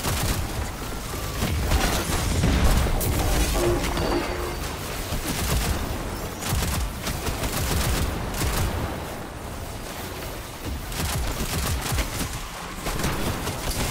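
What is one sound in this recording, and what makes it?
Electric blasts crackle and explode.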